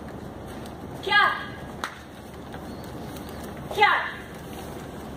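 A young woman shouts sharp, loud cries in a large echoing hall.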